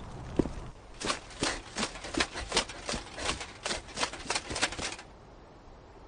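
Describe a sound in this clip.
Footsteps run quickly.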